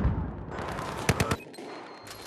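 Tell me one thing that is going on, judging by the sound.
A rifle fires a quick burst of sharp shots.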